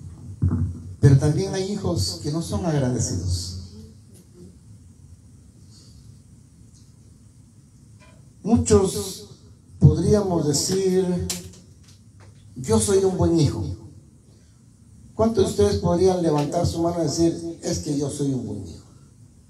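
A man speaks with feeling into a microphone, heard through loudspeakers in a room.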